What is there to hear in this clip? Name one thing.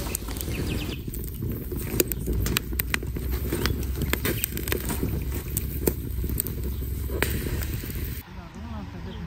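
A wood fire crackles and pops.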